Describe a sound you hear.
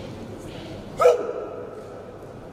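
A man shouts a sharp, loud cry in a large echoing hall.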